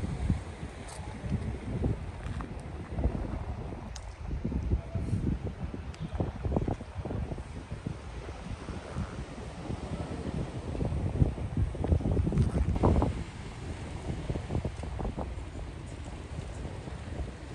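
Wind gusts and buffets outdoors, rumbling low.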